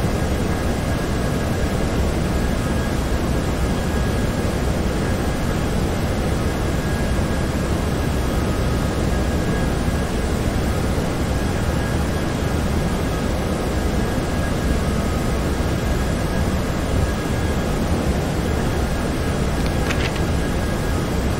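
Jet engines roar in a steady, low hum inside a cockpit.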